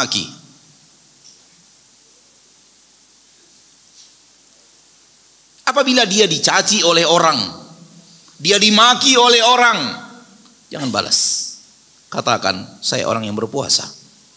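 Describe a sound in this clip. A man speaks calmly into a close microphone, pausing between phrases.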